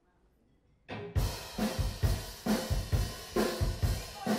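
A band plays loudly with drums, electric bass and keyboards.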